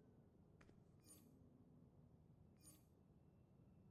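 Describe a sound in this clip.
A short electronic chime sounds as a menu opens.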